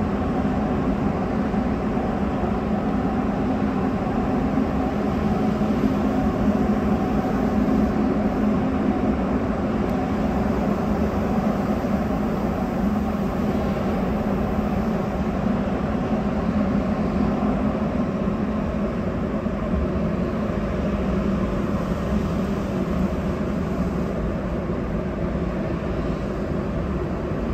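An underground train rumbles and roars steadily through a tunnel.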